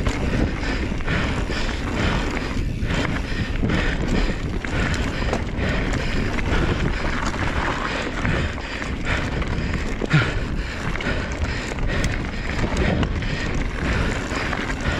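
Wind rushes loudly past a fast-moving bike.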